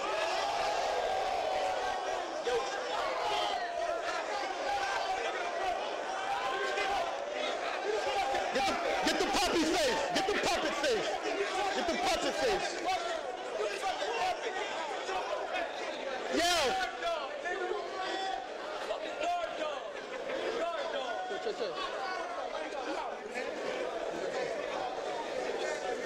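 A young man raps forcefully to a crowd.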